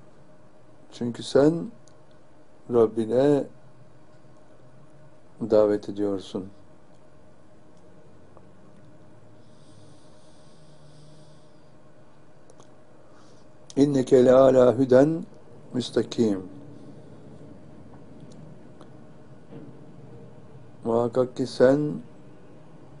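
An elderly man speaks slowly and calmly in short phrases, close to a microphone.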